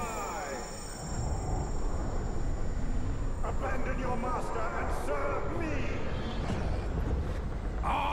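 A man speaks in a low, hoarse voice.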